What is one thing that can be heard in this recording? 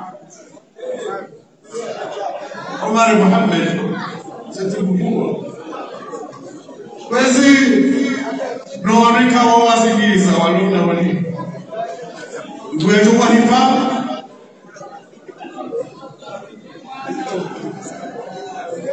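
An elderly man chants loudly into a microphone in a large echoing hall.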